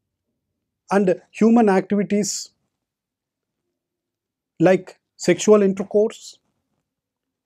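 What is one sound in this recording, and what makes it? A middle-aged man speaks calmly and clearly into a close microphone, with pauses.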